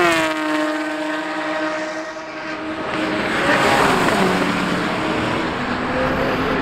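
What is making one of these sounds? A car engine roars at high revs as the car speeds past.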